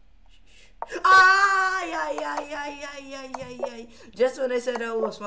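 A young man laughs loudly, close to a microphone.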